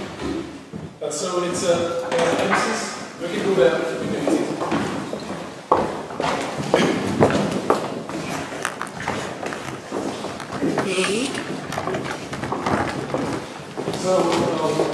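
Several men talk with each other nearby, in a room full of chatter.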